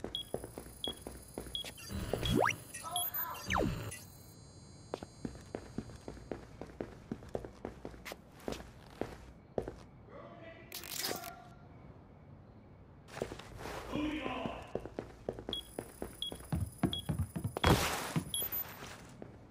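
Quick soft footsteps patter across a hard floor.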